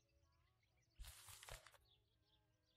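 A newspaper rustles as it is set down on a wooden table.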